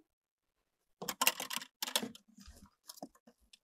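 Cardboard rustles and scrapes as it is handled.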